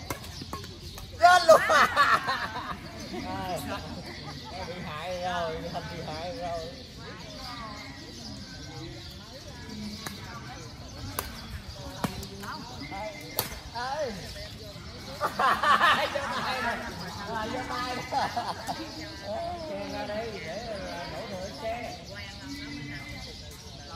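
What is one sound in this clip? Several adults talk and call out to each other outdoors during a game.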